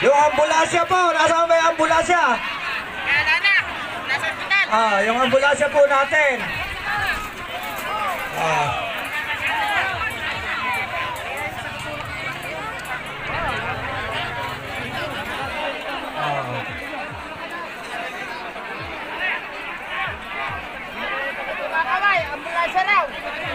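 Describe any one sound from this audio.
A crowd chatters and cheers outdoors.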